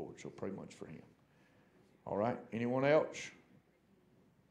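A middle-aged man speaks with emphasis into a microphone.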